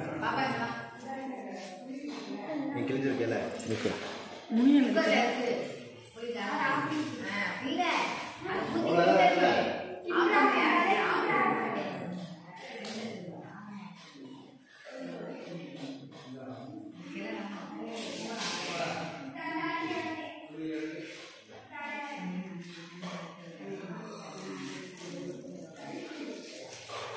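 Several women talk and chatter nearby.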